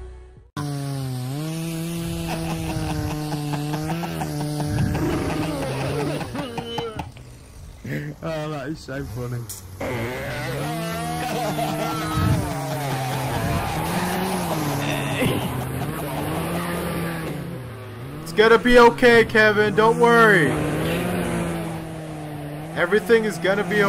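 A chainsaw engine runs steadily, its pitch rising and dipping now and then.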